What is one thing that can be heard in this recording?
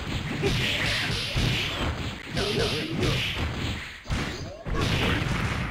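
Fast, lively game music plays.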